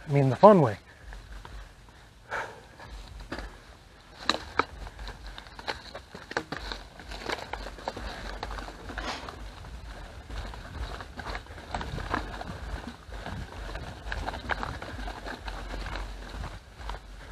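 Bicycle tyres roll and crunch over a dirt trail.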